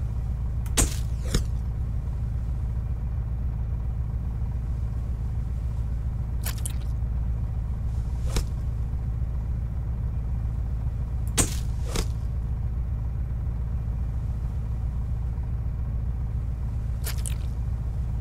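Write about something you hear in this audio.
A big fish splashes in the water.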